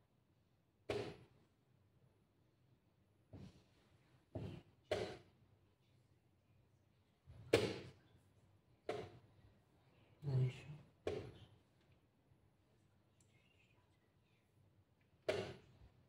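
Wooden chess pieces knock sharply on a board.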